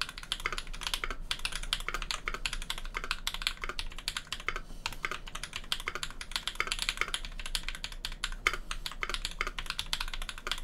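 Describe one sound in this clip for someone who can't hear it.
Fingers type quickly on a mechanical keyboard, with close, clacky keystrokes.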